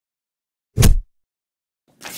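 Hands thump down on a wooden table.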